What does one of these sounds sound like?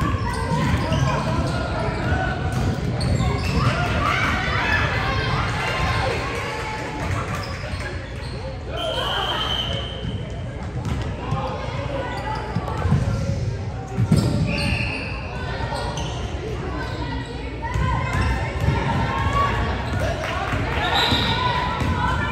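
Many young people chatter and shout across a large echoing gym.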